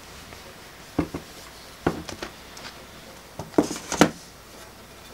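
A tablet clicks and knocks lightly as it is handled.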